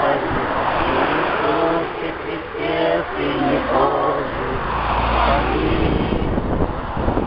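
A crowd of women sings together outdoors.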